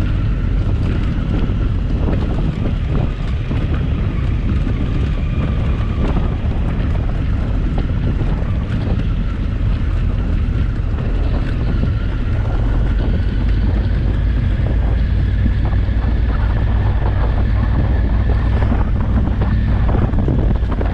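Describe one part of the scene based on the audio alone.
Tyres crunch and rattle over loose stones.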